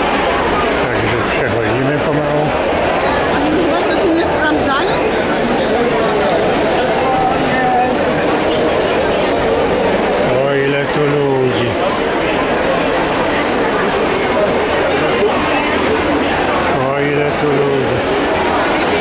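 An elderly woman speaks nearby.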